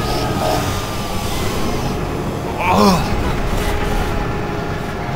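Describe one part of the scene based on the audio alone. Heavy machinery hums and rumbles steadily.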